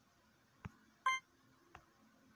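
A short electronic chime rings out once.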